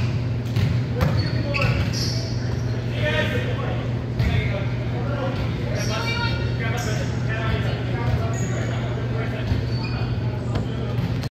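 Many young people chatter and call out across a large echoing gym.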